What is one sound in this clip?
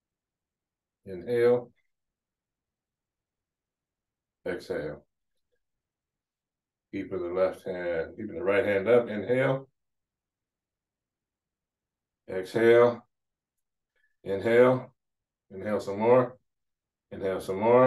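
A man speaks calmly in short phrases with pauses, close to a microphone.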